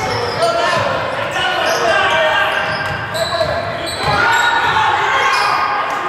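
A basketball bounces on the court as a player dribbles.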